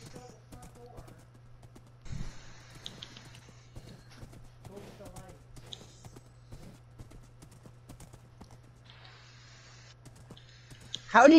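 Hooves clop steadily on soft ground.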